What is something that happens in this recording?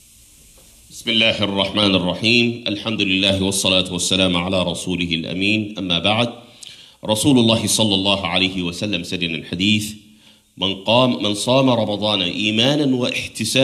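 A man chants loudly into a microphone in a large echoing hall.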